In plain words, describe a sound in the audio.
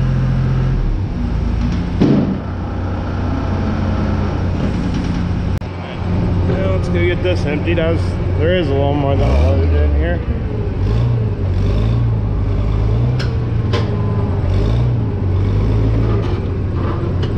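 A tractor's engine rumbles and revs.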